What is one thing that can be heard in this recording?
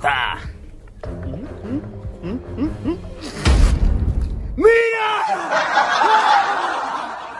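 A second young man laughs and talks excitedly.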